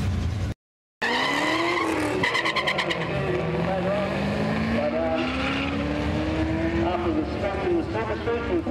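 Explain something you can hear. Two car engines roar loudly as they accelerate away.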